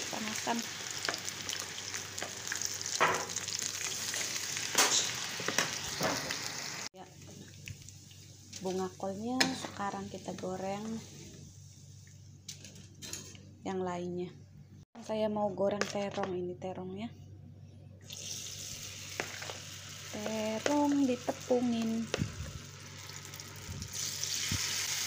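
Hot oil sizzles loudly as food fries.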